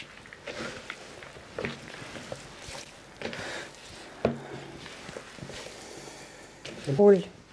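Hands squelch and mash a wet, leafy mixture in a bowl.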